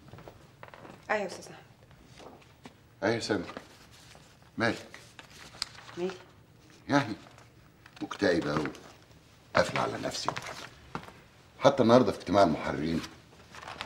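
An elderly man speaks firmly, close by.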